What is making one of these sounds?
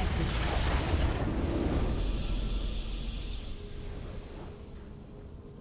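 A triumphant fanfare bursts out loudly and then fades away.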